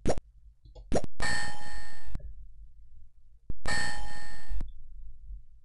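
Electronic game tones chime as letters are revealed.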